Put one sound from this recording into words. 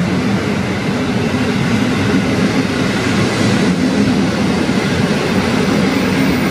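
A passenger train rumbles and clatters past close by on the rails.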